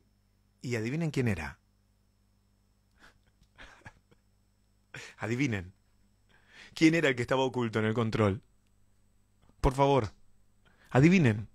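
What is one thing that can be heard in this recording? A young man speaks with animation, close into a microphone.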